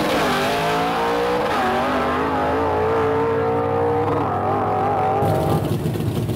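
A race car engine roars and climbs through the gears as it speeds away.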